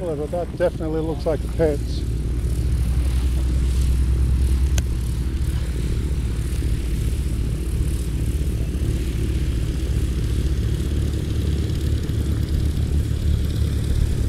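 A small propeller plane's engine idles with a low steady drone.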